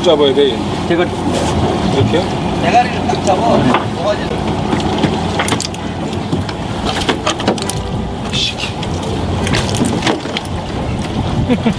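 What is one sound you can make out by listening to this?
A wet octopus squelches and slaps against a hard deck.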